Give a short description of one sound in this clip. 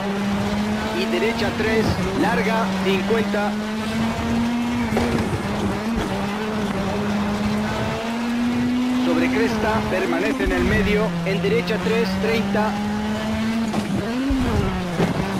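Gravel crunches and rattles under the tyres.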